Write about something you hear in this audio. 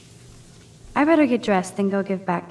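A young woman speaks calmly and close up.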